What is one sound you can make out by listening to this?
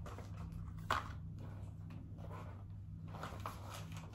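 A plastic wrapper crinkles in a woman's hands.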